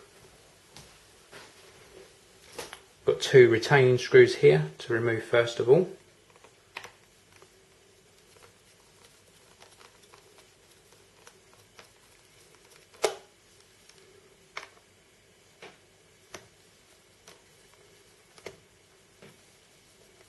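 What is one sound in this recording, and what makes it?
A screwdriver clicks and taps against small metal parts.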